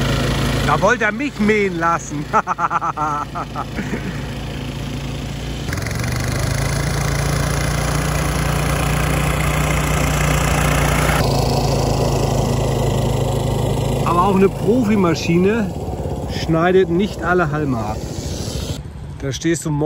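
A lawn mower engine hums steadily close by.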